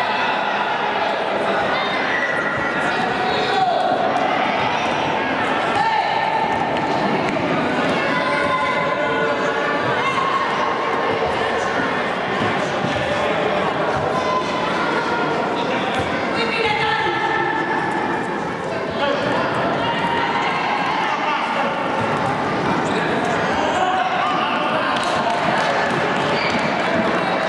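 A crowd of children shouts and cheers loudly in a large echoing hall.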